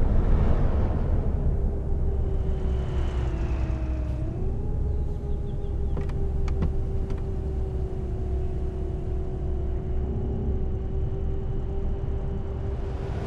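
A bus engine hums steadily, dipping briefly and then settling again.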